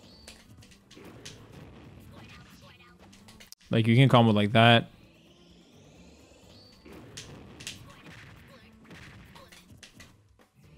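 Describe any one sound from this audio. A fighting game's attack and impact sounds play.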